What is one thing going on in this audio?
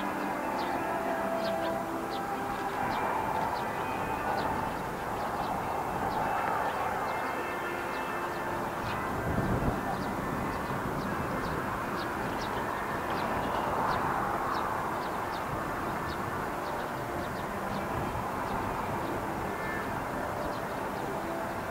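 A crowd of people murmurs and chatters outdoors at a distance.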